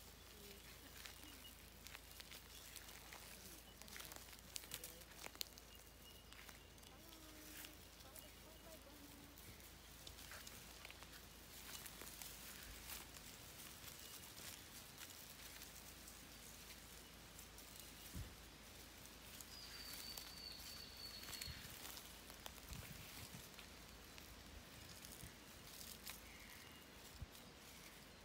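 A large lizard's feet rustle through dry leaves on the ground.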